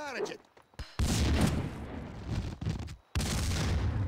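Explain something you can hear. An explosion booms and roars loudly.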